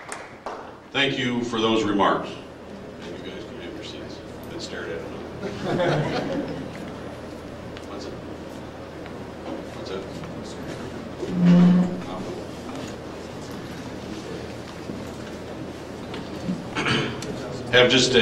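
A man speaks through a microphone over a loudspeaker in an echoing hall.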